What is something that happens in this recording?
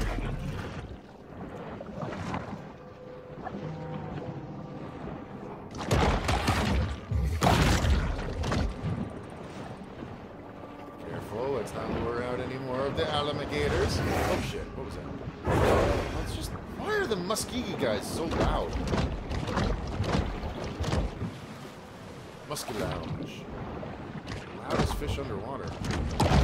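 Deep underwater rumbling and splashing play throughout.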